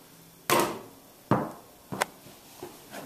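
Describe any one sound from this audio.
A ball bounces off a hoop's rim and thumps down.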